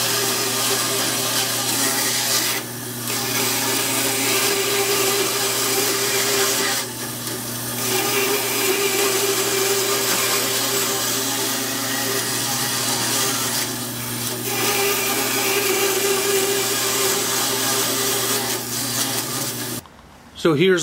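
A band saw hums steadily as it cuts through wood.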